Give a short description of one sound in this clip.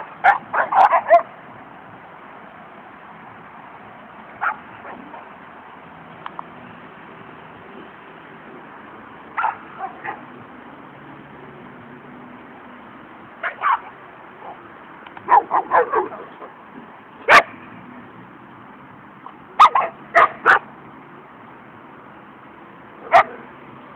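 Dogs bark in short bursts close by.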